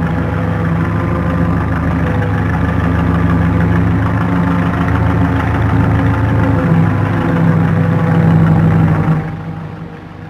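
A truck engine rumbles as a truck drives past.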